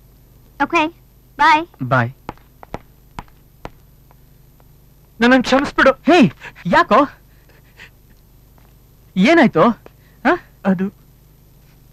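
A man speaks emotionally, close by, in short pleading bursts.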